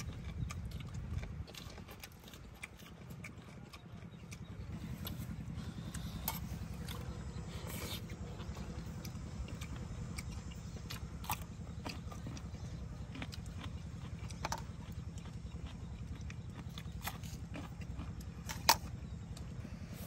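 A young man chews food noisily close by.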